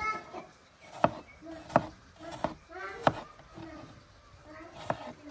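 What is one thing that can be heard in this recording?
A knife chops through a potato onto a plastic board with sharp knocks.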